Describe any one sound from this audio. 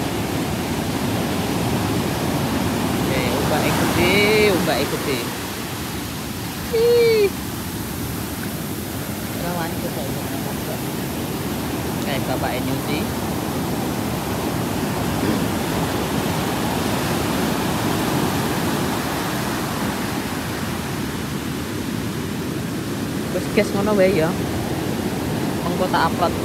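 Waves wash and break on the shore in a steady rush.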